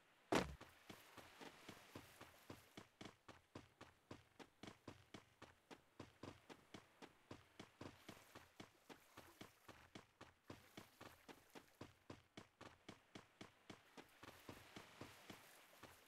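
Quick footsteps run steadily over a hard surface.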